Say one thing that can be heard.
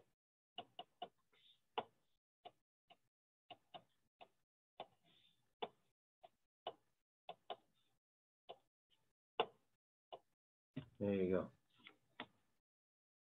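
A pen taps and clicks on a tablet.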